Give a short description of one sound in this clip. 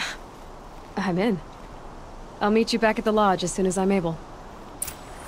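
A young woman answers in a clear, steady voice.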